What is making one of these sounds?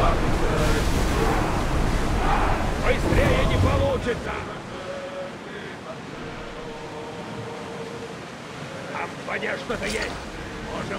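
Rough sea water rushes and splashes against a ship's hull.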